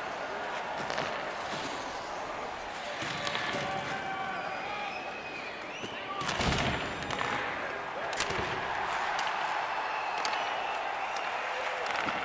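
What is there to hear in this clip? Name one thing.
Hockey sticks click sharply against a puck.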